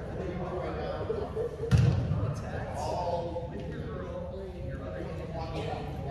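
Girls chatter and call out in a large echoing hall.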